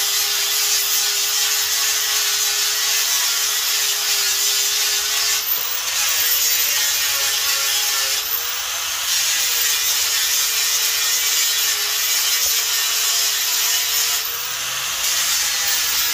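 An angle grinder whines steadily as its sanding disc grinds against wood.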